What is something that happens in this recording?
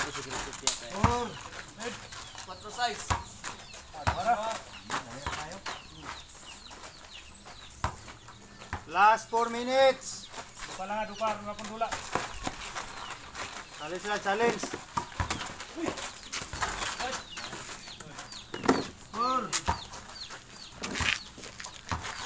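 A basketball bounces on hard dirt ground.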